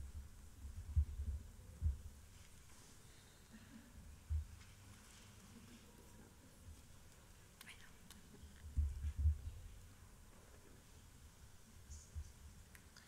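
A small flame flickers and burns softly.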